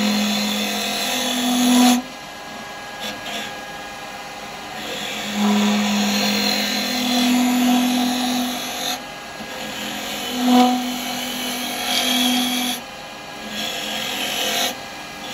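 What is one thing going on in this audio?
A gouge scrapes and cuts into spinning wood in bursts.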